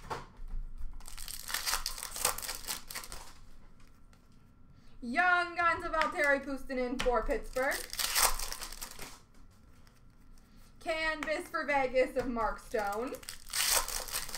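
Plastic wrappers crinkle and tear as packs are opened.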